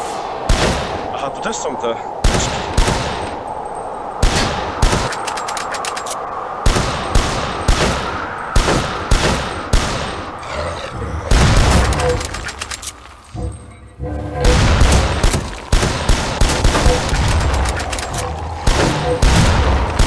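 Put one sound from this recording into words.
Shotgun blasts ring out again and again.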